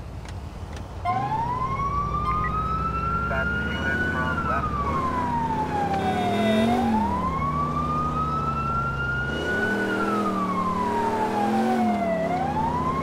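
A siren wails up and down, loud and close.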